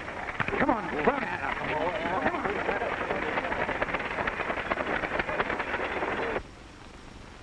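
Several men shout and call out outdoors.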